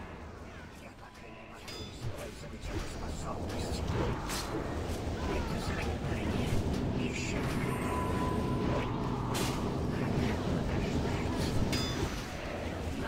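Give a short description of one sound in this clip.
Magic spells crackle and boom in a busy battle.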